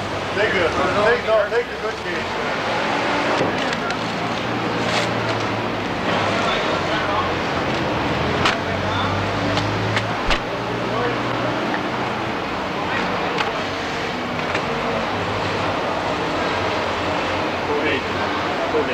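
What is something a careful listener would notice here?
Cardboard boxes rustle and scrape as men handle them.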